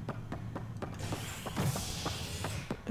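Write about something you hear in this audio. A heavy sliding door whooshes open.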